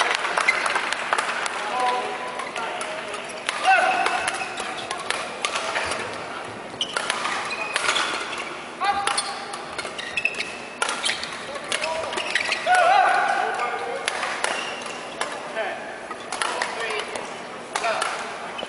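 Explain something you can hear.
Shuttlecocks are struck sharply with rackets in a quick rally.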